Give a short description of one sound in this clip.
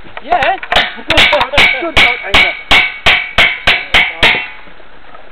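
Metal clangs sharply in quick, even blows against a rail.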